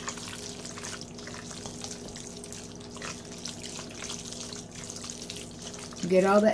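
A spoon scrapes and stirs food in a metal bowl.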